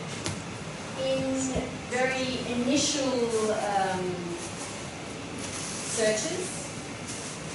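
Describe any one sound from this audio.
A young woman speaks calmly, slightly distant, in a room with some echo.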